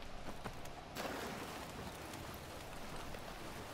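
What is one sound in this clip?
Water rushes and splashes nearby.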